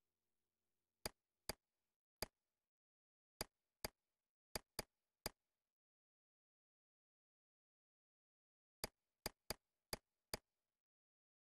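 Short soft interface clicks tick as a menu selection moves.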